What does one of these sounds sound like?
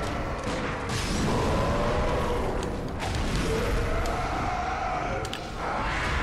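A monster roars and growls loudly.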